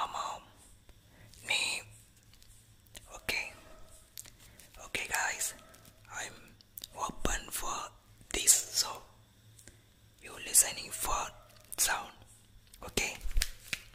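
A young man whispers closely into a microphone.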